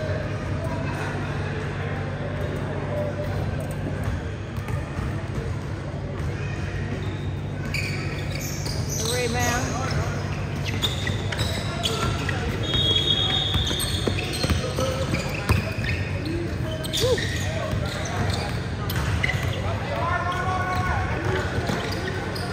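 A crowd of spectators murmurs and chatters in a large echoing gym.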